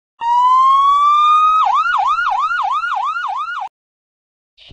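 A fire engine siren wails.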